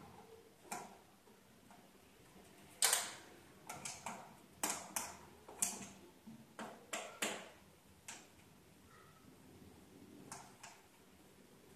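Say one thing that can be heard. Hard plastic parts click and knock as a telescope is adjusted by hand.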